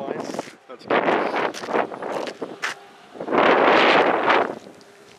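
Wind gusts and buffets outdoors in open country.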